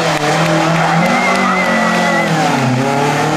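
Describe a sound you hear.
Tyres squeal briefly on tarmac as a car corners.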